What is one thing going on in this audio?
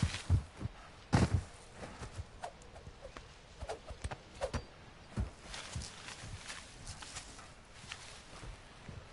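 Footsteps crunch quickly on sand and dry grass.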